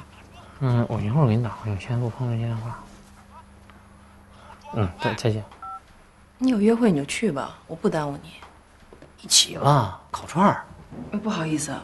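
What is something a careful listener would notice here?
A young man talks calmly on a phone, close by.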